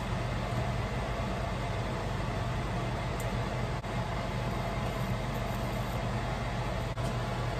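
Apples sizzle steadily in a hot frying pan.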